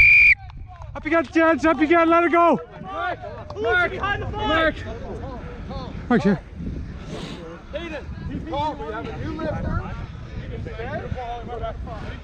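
Young men shout and call out to each other loudly and nearby.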